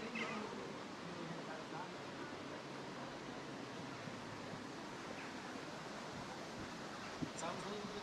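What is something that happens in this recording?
Several adults talk quietly at a distance outdoors.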